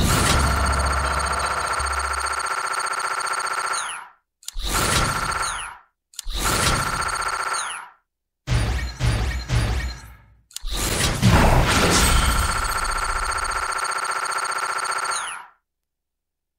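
An electronic tone hums steadily in bursts as a score counts up.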